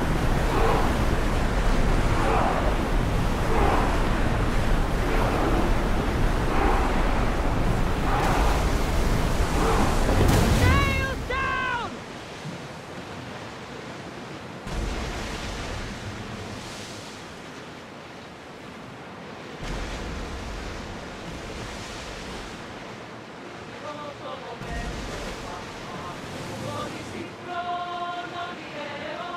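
Waves rush and splash against a ship's hull.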